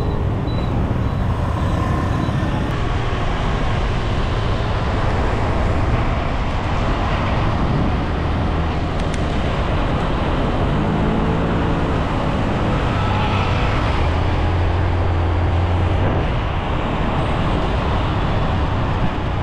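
Wind roars steadily past a moving rider.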